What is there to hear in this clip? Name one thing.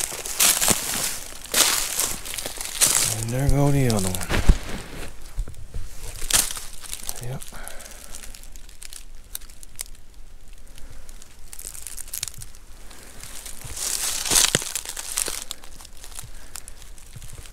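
Footsteps crunch through dry leaves close by.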